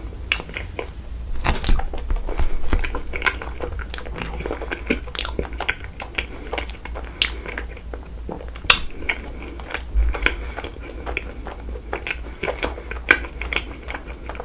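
Soft rice cakes squish and stick as a young man handles them close to a microphone.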